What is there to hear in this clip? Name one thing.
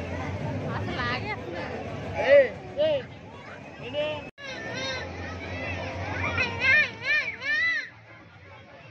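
Children shriek and squeal with excitement nearby.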